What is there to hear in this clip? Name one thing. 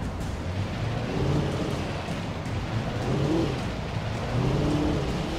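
A car engine rumbles steadily as the car drives along.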